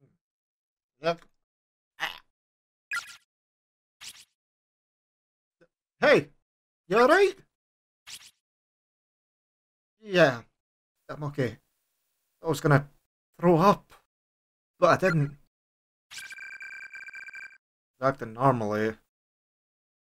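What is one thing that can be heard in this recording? A young man speaks into a close microphone in short bursts.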